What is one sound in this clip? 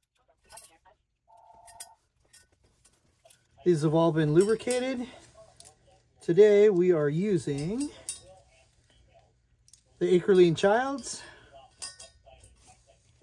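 Small metal parts clink against a metal engine part.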